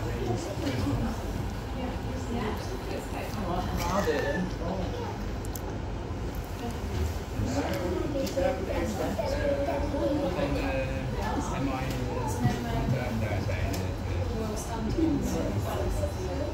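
A young woman talks softly close by.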